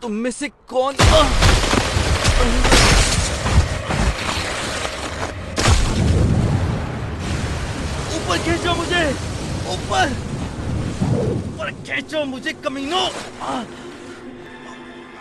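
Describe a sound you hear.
Rushing water roars loudly.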